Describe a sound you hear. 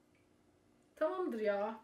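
A woman speaks up close.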